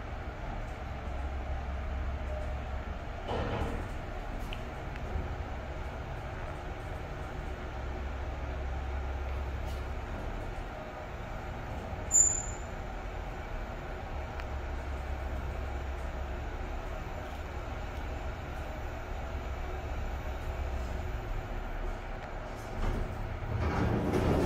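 An elevator hums and rumbles low as it rises.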